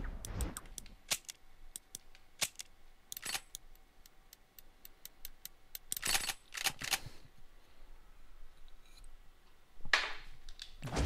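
Menu selections click and tick sharply.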